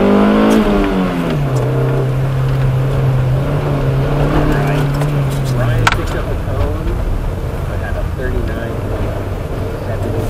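A windshield wiper swishes across the glass.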